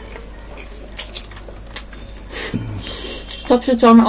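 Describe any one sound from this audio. A man chews food close to a microphone.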